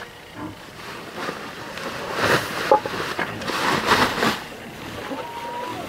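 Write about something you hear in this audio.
A plastic sack rustles and crinkles.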